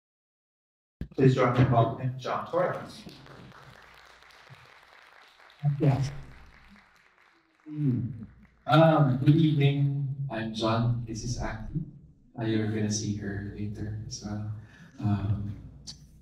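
A man speaks calmly through a microphone in a hall.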